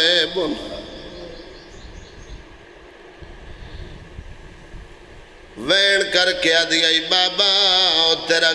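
A man chants loudly through a microphone and loudspeakers, in a melodic wailing voice with echo.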